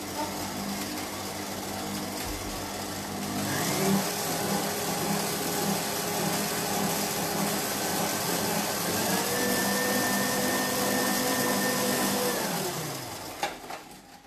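A stand mixer whirs steadily with a motor hum.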